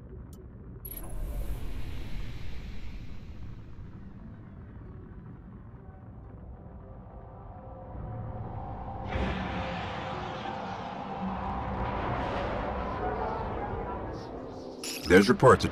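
A spaceship engine roars as the ship launches and flies off.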